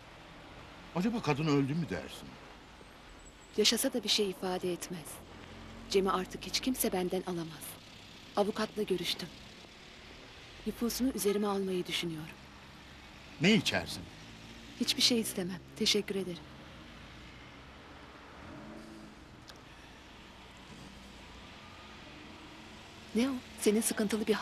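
A woman talks with feeling, close by.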